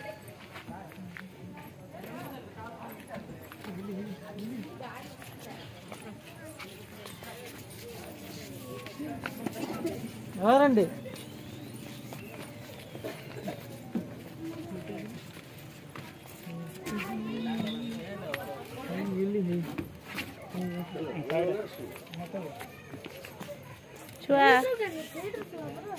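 A crowd of men and women talk and call out close by.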